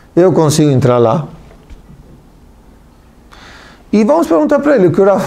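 A middle-aged man speaks calmly and with emphasis into a close microphone.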